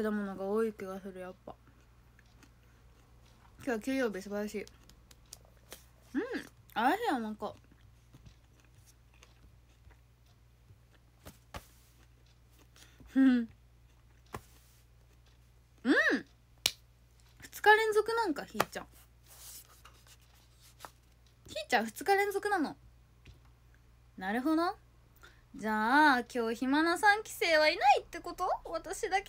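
A young woman talks close to a microphone in bursts, with pauses between.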